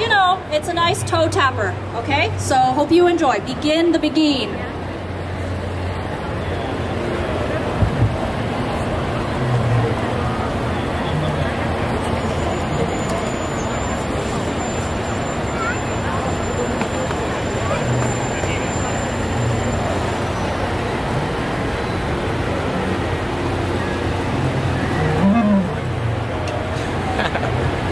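A brass band plays outdoors.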